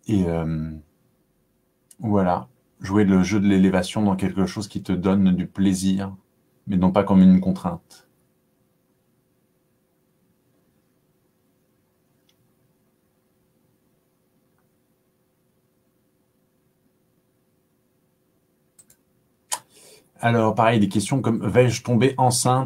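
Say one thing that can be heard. A man talks calmly close to a microphone, pausing between phrases.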